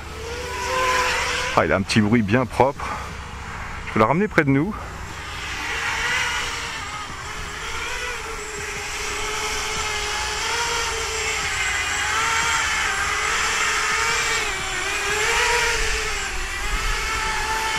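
Drone motors whine steadily, rising and falling in pitch as the drone flies.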